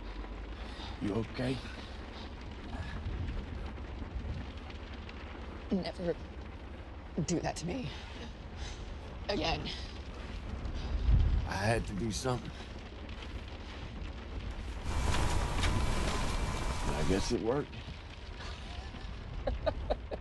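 A man speaks tensely close by.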